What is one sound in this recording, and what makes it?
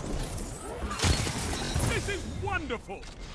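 A loud energy blast bursts with crackling.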